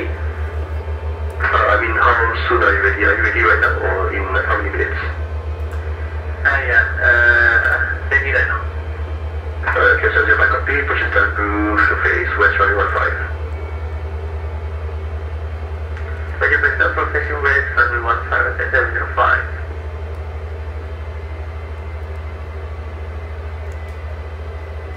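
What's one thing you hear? A jet airliner's engines drone low and steadily.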